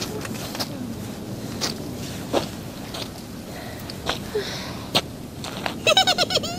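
Footsteps scuff on dry dirt outdoors.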